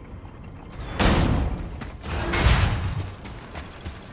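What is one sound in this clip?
Blades whoosh through the air.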